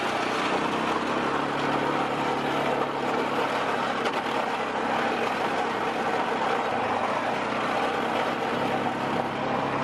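Tyres crunch over snow on a track.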